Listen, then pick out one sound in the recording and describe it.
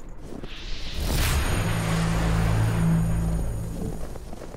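A menu chimes and hums electronically.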